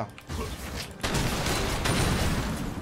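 Video game combat effects crash and clash loudly.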